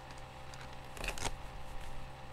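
Clothing rustles close to the microphone as a man moves.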